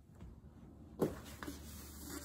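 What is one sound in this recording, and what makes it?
A metal pouring pitcher is set down on a metal counter with a clank.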